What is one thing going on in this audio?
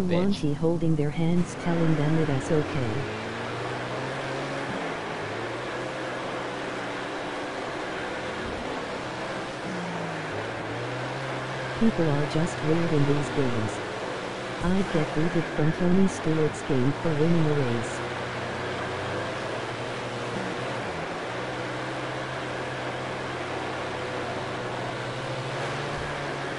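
Racing car engines drone loudly and steadily.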